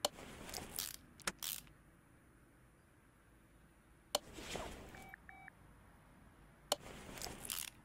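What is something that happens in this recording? A ratchet wrench clicks as a bolt is tightened.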